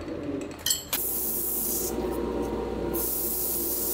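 Sandpaper hisses against spinning wood.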